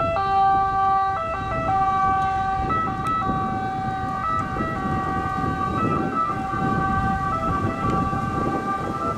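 An ambulance siren wails loudly nearby with a two-tone call.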